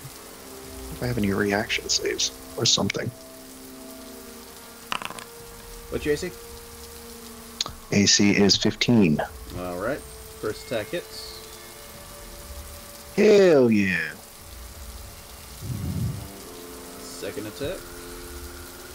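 A man talks casually into a close microphone, in short bursts.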